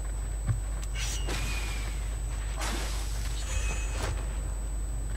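A sword swishes and clangs in quick slashes.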